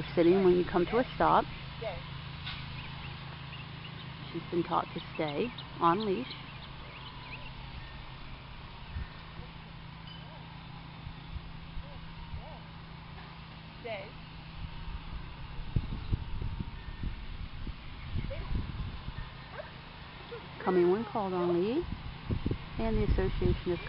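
A woman speaks in a high, animated voice close by.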